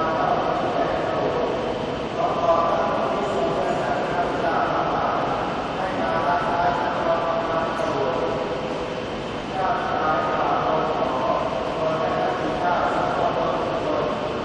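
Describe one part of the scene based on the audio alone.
A large choir of girls sings together outdoors.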